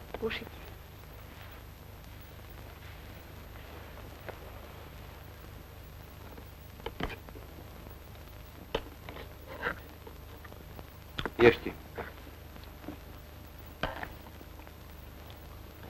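A small fire crackles.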